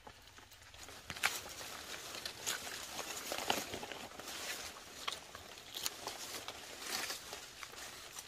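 Fungus is plucked and snapped off a log with crisp rustling.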